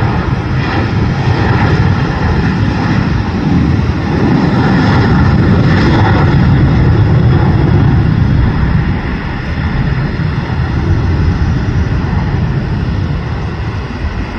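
A jet airliner roars loudly as it speeds down a runway and lifts off.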